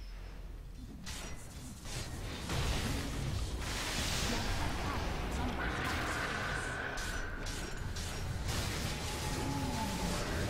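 Video game battle effects clash and crackle loudly.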